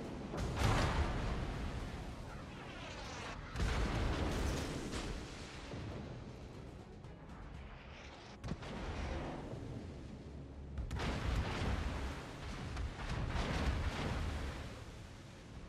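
Heavy naval guns boom in loud blasts that rumble away.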